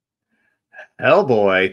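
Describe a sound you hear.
A man exclaims loudly over an online call.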